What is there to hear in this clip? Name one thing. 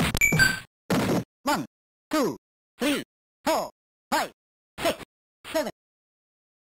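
Short falling electronic beeps sound one after another, like a count.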